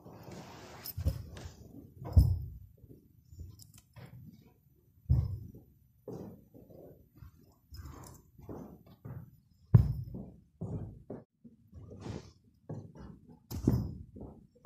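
Cushions thump softly as they are set down.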